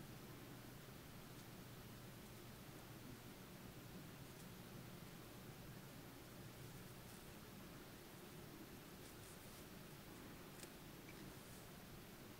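A crochet hook and yarn rustle softly as stitches are pulled through.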